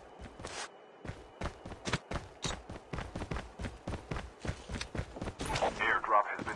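Footsteps run quickly over a hard floor.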